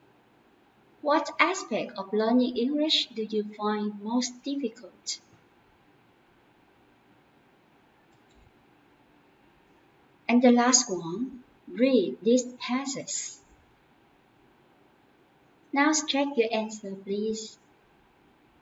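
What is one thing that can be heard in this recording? A young woman speaks calmly and clearly into a close microphone, in short phrases with pauses.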